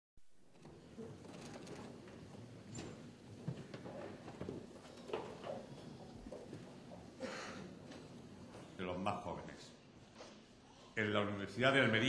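A crowd murmurs and chatters in a large hall.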